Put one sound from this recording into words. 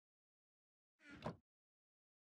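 A wooden chest thumps shut.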